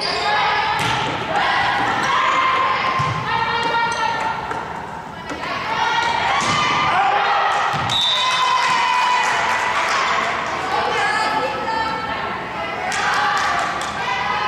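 Young women shout and call out on the court.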